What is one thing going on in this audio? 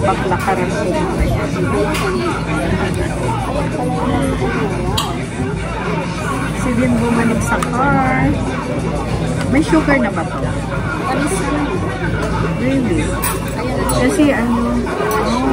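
Another middle-aged woman talks and answers nearby.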